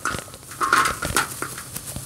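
Hard lumps clatter into a metal pan.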